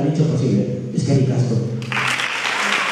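A young man speaks through a microphone in a large hall.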